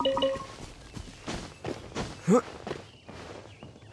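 Feet thump on a wooden ladder.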